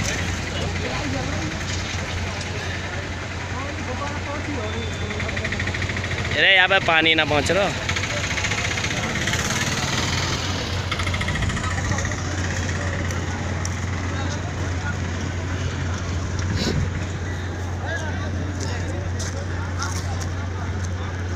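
A crowd of men talk and call out outdoors.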